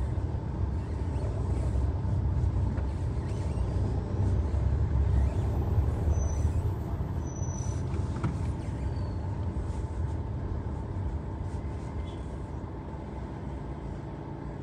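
Traffic hums along a wet street outdoors.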